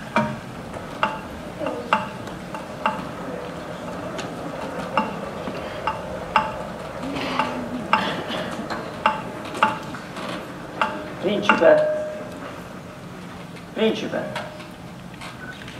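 An electric wheelchair motor whirs softly as it rolls.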